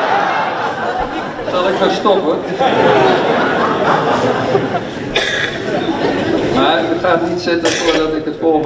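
An elderly man speaks calmly into a microphone close by.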